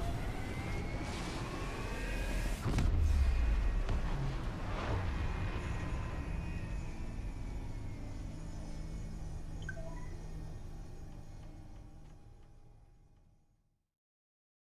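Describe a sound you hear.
A deep roaring whoosh swells into a booming blast, then slowly fades away.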